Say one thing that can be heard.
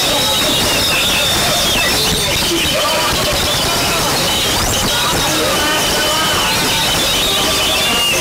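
A bird sings a varied, whistling song close by.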